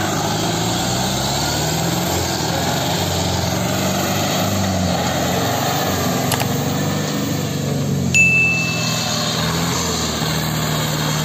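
A trailer rattles over bumpy ground.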